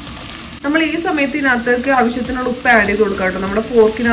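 A wooden spoon stirs onions in a pan.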